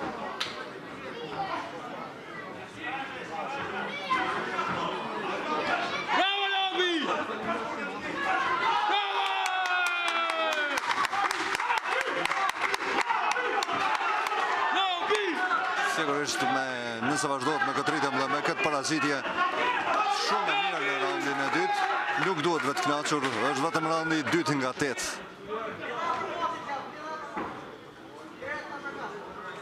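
A crowd chatters and shouts in a large echoing hall.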